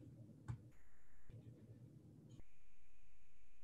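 Hands roll soft dough.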